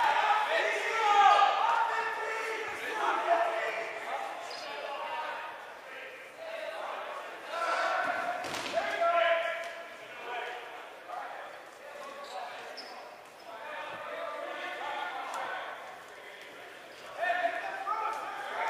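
Voices of spectators and players chatter throughout a large echoing gym.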